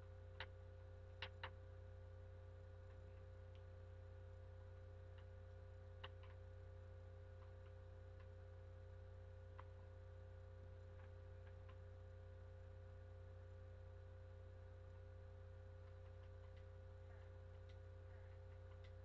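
Short game clicks and pops sound now and then.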